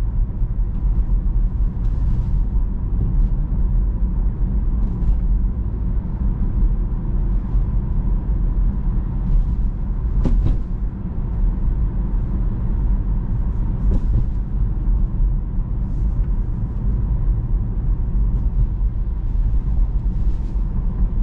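A car's tyres and motor hum steadily from inside the cabin while driving.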